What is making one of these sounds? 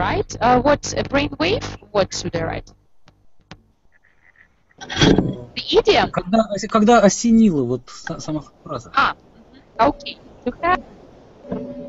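A young woman talks with animation through a headset microphone on an online call.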